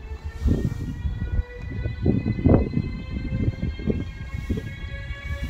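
An electric locomotive hums steadily as a train rolls slowly past.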